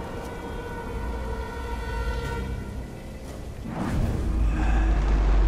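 A low wind rumbles steadily outdoors.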